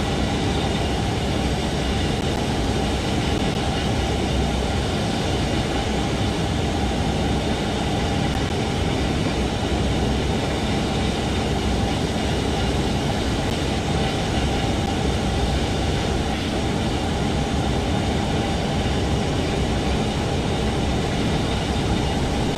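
An electric train rumbles steadily along the rails at speed.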